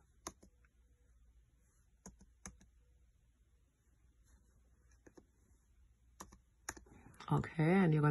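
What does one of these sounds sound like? Fingers tap lightly on a laptop keyboard.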